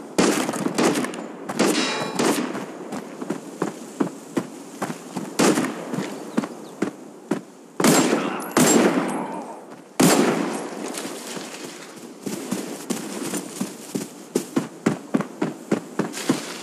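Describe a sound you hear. Footsteps crunch quickly through grass and dirt.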